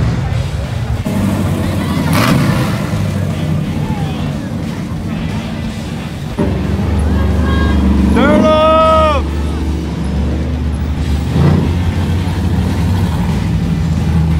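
A crowd chatters along the street outdoors.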